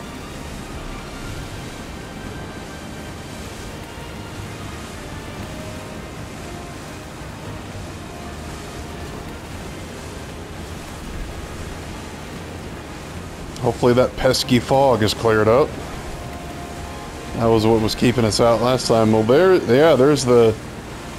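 An engine hums steadily.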